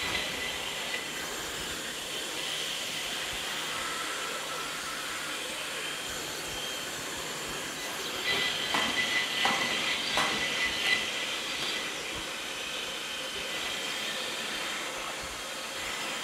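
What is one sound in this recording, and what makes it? A robot's motors whir softly as it moves.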